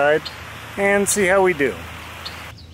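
A man speaks briefly and cheerfully close to the microphone.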